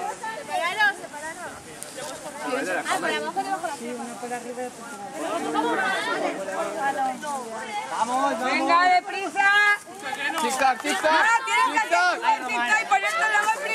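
Teenagers chatter and call out to one another close by.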